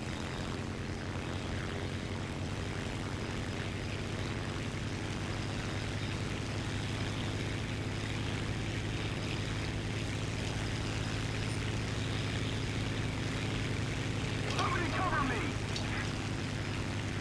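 A propeller plane's engine drones steadily throughout.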